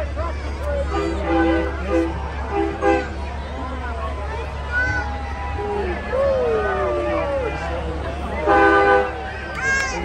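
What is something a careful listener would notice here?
A truck horn honks in short blasts.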